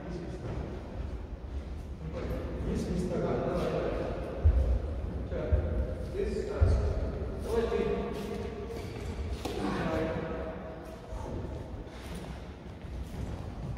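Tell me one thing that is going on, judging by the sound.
Footsteps thud and squeak on a wooden floor in a large echoing hall.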